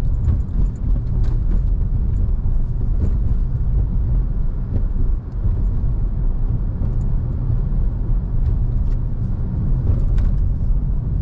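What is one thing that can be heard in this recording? A car engine hums steadily with road rumble from inside a moving car.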